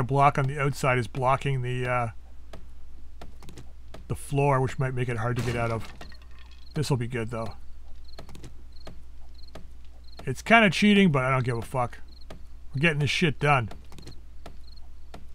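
A stone axe strikes a wooden wall with repeated dull knocks.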